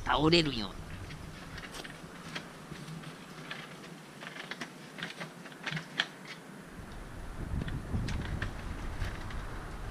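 A dog gnaws and tugs at a wooden stick, with light knocks and scrapes.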